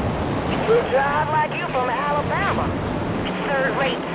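A flamethrower roars in a burst of fire.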